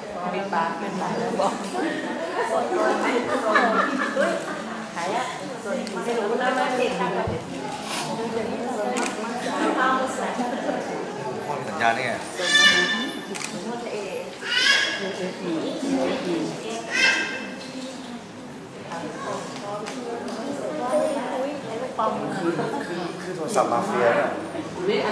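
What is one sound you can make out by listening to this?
A young man talks casually, close by.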